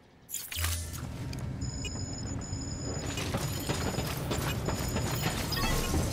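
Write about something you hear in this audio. Footsteps clatter on a hard floor.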